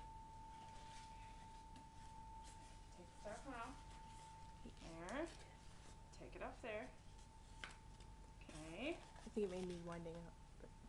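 Cardboard boxes rustle and tap as they are handled.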